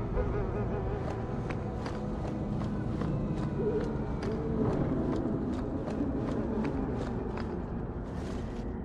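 Footsteps walk steadily on stone.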